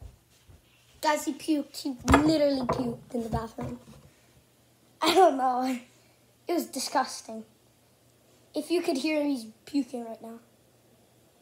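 A young boy talks with animation, close by.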